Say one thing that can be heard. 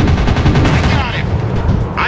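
A plane explodes with a loud blast.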